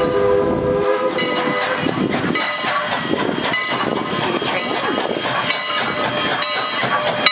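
A steam locomotive chugs and rumbles as it passes close by.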